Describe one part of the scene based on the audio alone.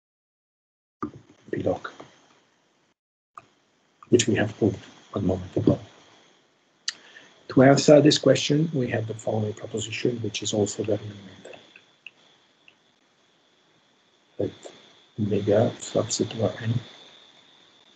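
A man speaks calmly through a microphone, explaining in short bursts.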